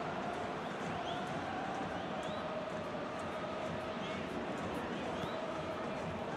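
Fans whistle now and then in a stadium crowd.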